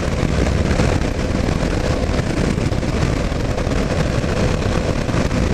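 An engine hums steadily as a vehicle drives along.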